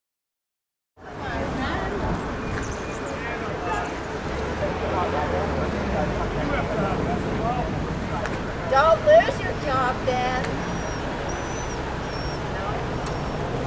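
A crowd of protesters chatters and calls out outdoors.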